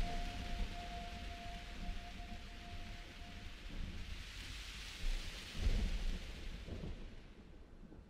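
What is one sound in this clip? Wind rushes loudly through trees outdoors, then dies away.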